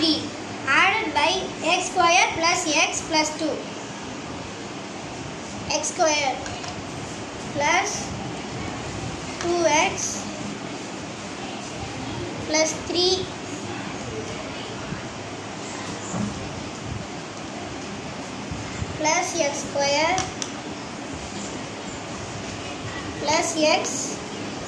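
A girl speaks calmly and clearly, close by, in short bursts.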